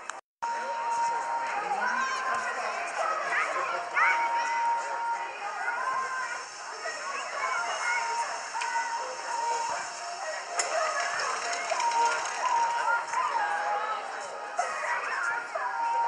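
Young children shout and chatter outdoors.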